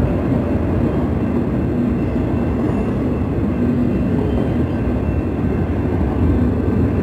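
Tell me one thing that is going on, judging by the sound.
A long freight train rumbles and clatters steadily past close by.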